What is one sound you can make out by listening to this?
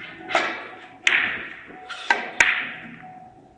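Billiard balls knock against each other and the cushions.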